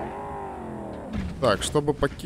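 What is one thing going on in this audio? A car engine winds down.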